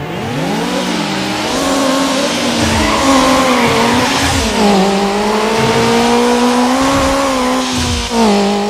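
A racing car engine revs high and roars, rising and falling in pitch as gears change.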